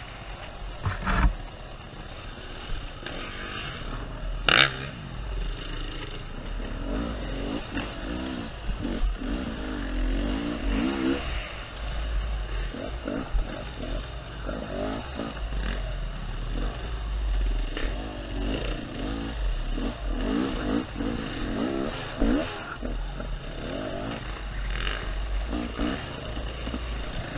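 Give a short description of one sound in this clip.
Dirt bike engines rev and buzz close by.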